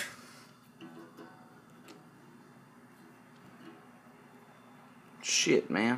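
A pencil taps against guitar strings.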